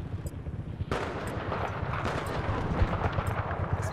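A helicopter drones overhead.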